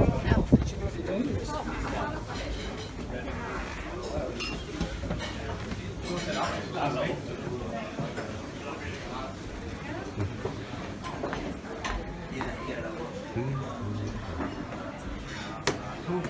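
Men and women chat quietly at a distance indoors.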